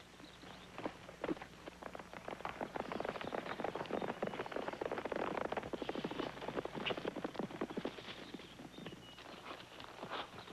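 Horses gallop with hooves pounding on dirt.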